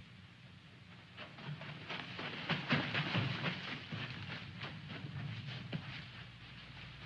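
Footsteps rush through dry brush and grass.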